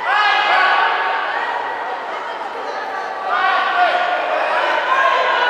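A man calls out in a large echoing hall.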